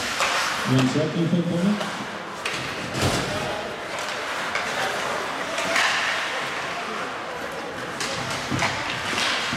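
Hockey sticks clack against the puck and ice.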